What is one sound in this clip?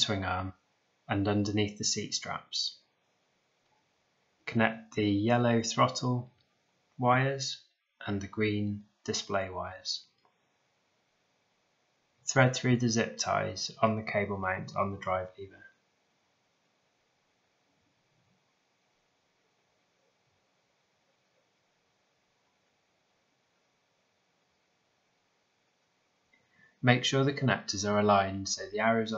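A man speaks calmly and clearly close by, in short phrases with pauses.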